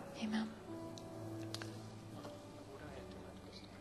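A keyboard plays soft sustained notes.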